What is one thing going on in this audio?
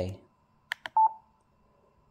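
A radio gives a short electronic beep.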